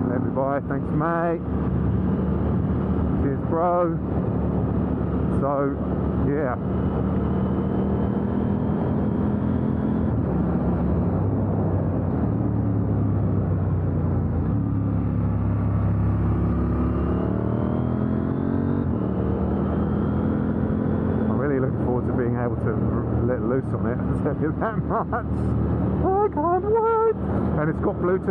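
A motorcycle engine roars close by, revving up and down through the gears.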